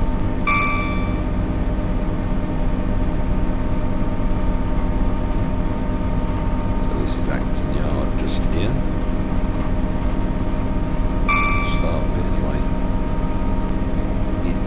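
A train's engine hums and drones steadily.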